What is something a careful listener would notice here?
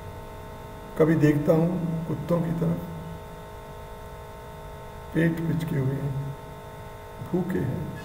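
An elderly man speaks calmly and close to a microphone, in short phrases with pauses.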